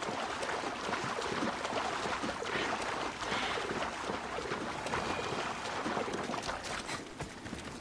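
Water splashes as a swimmer strokes through it.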